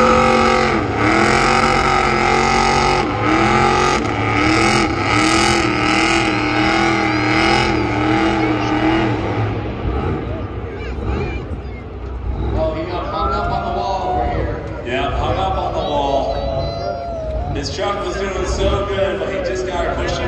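Tyres screech and squeal as a car spins in place.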